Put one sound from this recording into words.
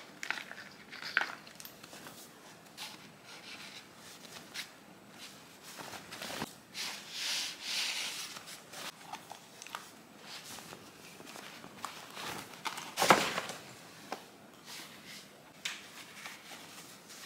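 A plastic bag rustles and crinkles close by as it is handled.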